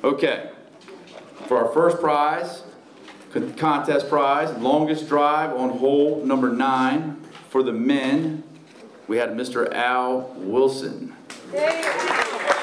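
An elderly man speaks calmly into a microphone over a loudspeaker.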